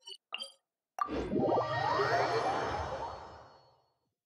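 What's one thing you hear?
A soft magical whoosh swells and fades.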